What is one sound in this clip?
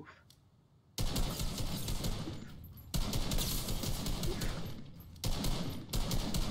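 Rapid gunshots ring out in loud bursts.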